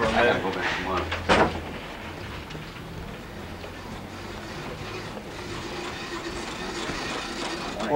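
Footsteps walk along a hallway.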